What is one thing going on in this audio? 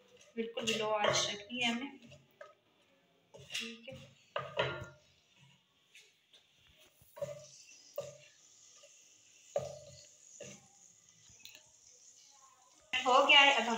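A wooden spatula scrapes and stirs in a metal pan.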